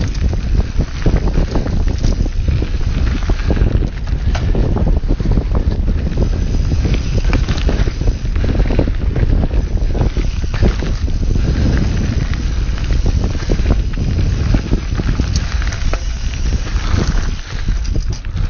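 Wind rumbles loudly against a close microphone.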